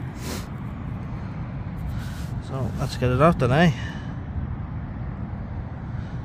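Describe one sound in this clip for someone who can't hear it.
A hand crumbles and pokes at loose soil.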